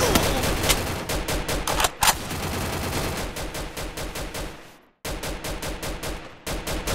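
Gunshots fire in quick, rapid bursts.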